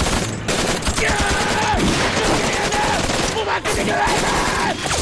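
A man shouts fiercely.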